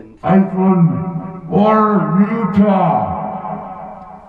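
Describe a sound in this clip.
A man speaks into a microphone in a drawn-out, sing-song voice.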